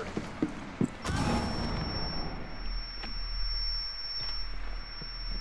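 A loud blast goes off close by, followed by a high ringing tone.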